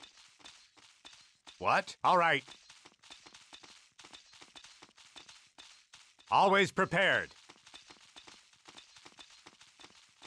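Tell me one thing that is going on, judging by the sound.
Many soldiers' feet tramp in quick, soft steps.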